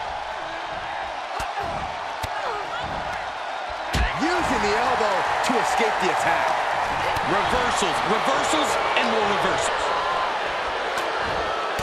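A large crowd cheers and roars in a big arena, growing louder partway through.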